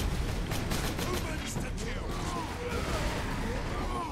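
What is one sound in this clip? A heavy gun fires rapid bursts of shots.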